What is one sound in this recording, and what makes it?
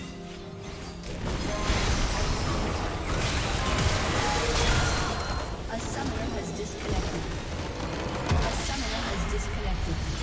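Spell effects crash and whoosh in a game battle.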